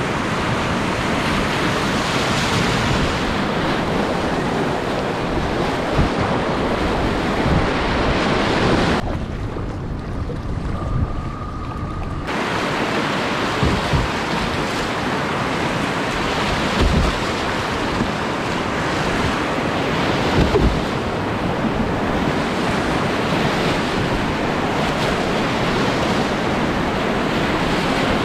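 Whitewater rapids roar and churn loudly close by.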